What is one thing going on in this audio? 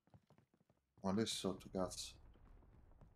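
A man speaks loudly and close into a microphone.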